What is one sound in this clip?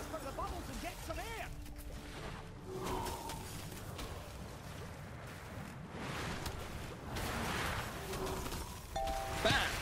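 Magic spells whoosh and crackle in a game battle.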